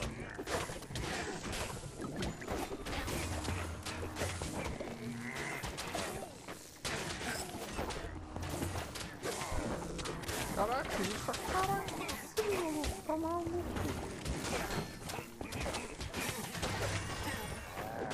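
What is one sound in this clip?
Game weapons swing and strike enemies.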